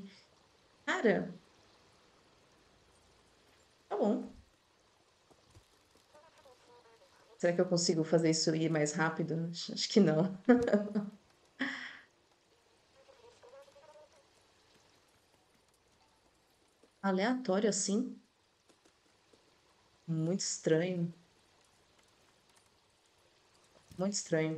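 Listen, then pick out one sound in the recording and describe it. A young woman talks calmly and close up through a headset microphone.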